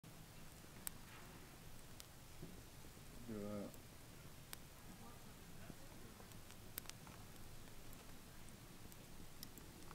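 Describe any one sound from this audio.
A small wood fire crackles and pops.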